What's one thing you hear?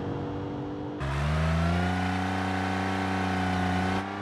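A large off-road vehicle's engine roars.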